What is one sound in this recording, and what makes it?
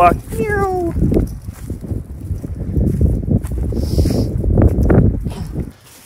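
Footsteps crunch quickly over dry grass.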